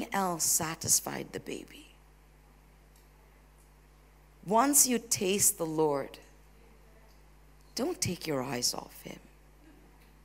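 A woman speaks with animation through a microphone, pausing between phrases.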